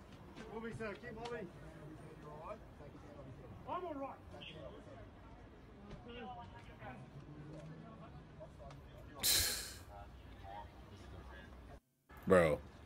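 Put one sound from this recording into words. Men talk faintly outdoors.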